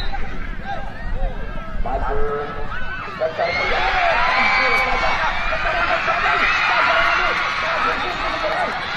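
A crowd of spectators shouts and cheers outdoors, rising loudly after a few seconds.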